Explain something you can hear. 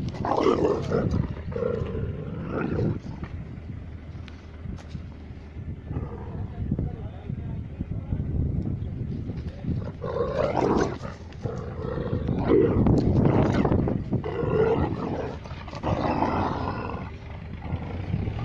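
Paws scuffle and rustle through grass.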